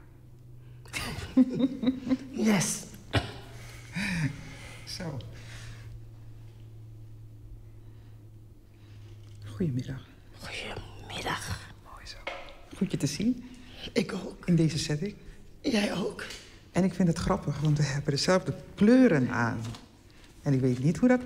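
A middle-aged woman laughs warmly close by.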